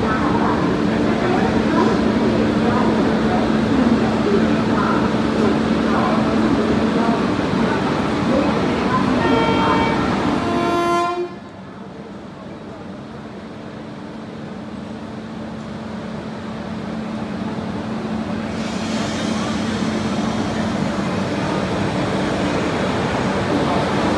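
An electric locomotive hums steadily close by.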